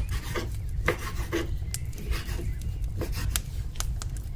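A knife cuts through raw meat on a wooden board with soft knocks.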